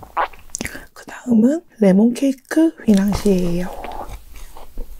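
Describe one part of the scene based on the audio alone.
A young woman makes playful sounds with her voice close to a microphone.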